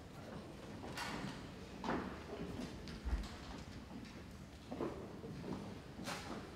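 Footsteps tap on a wooden stage in a large, echoing hall.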